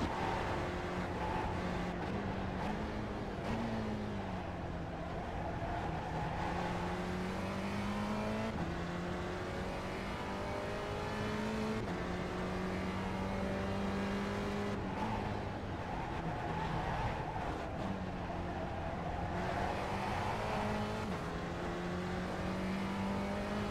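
A racing car engine drones steadily, its pitch stepping up and dropping back with gear changes.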